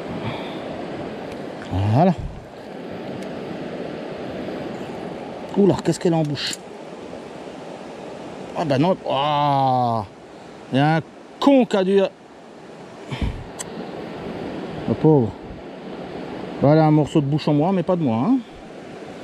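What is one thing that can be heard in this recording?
A river flows and rushes steadily over stones nearby.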